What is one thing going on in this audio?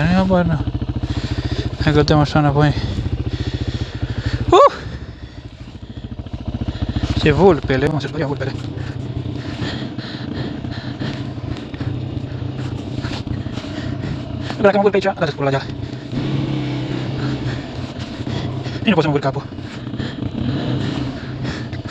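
A quad bike engine idles with a steady low rumble, close by.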